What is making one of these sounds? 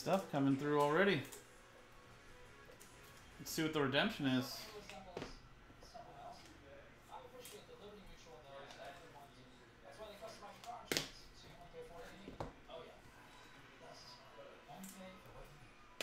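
Trading cards rustle and tap as a man handles them.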